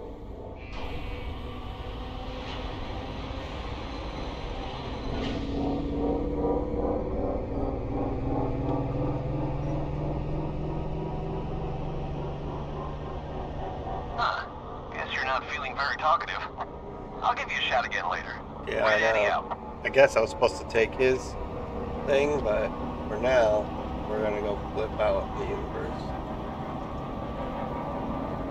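A vehicle engine hums steadily, rising and falling in pitch.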